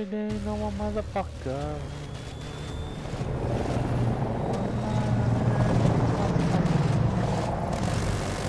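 A jet engine roars and grows louder as the jet flies low.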